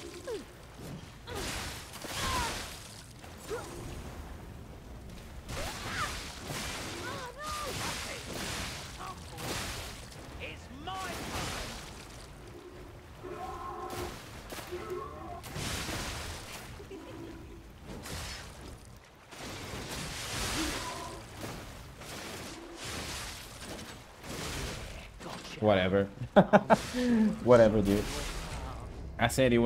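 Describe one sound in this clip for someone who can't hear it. Blows land with heavy thuds.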